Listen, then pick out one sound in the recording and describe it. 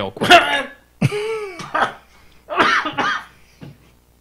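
Men laugh into close microphones.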